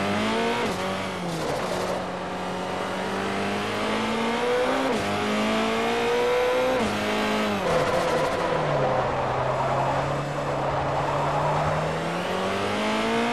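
A racing prototype engine revs high and drops in pitch as it shifts gears.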